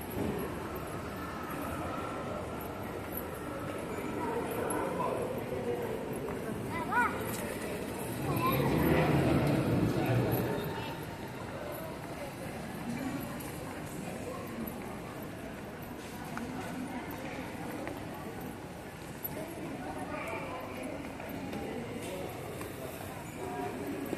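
Footsteps shuffle along a hard floor.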